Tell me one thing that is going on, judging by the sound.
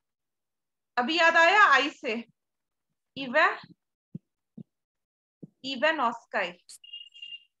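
A woman speaks calmly through a microphone, with pauses.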